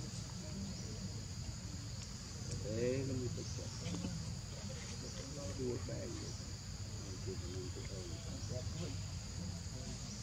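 A monkey chews food softly.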